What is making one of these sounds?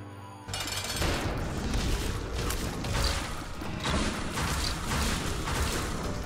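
Video game sound effects burst and thump.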